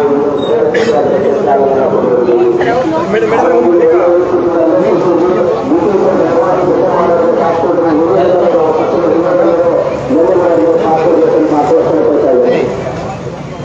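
A man speaks loudly and steadily.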